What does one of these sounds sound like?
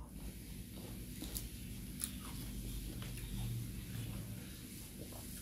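Lettuce leaves crinkle and rustle in a woman's hands.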